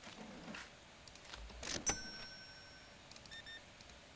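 Coins clink in a cash drawer.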